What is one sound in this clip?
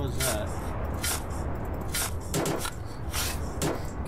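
A shovel scrapes and digs into soil.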